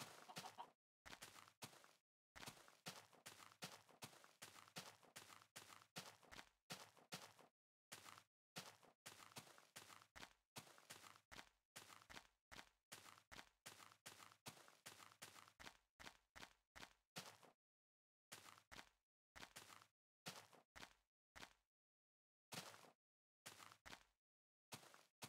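Footsteps crunch rapidly over grass.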